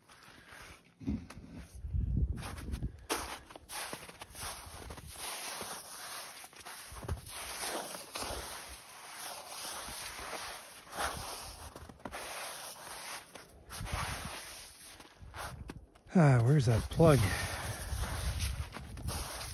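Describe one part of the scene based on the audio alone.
Footsteps crunch slowly through wet snow.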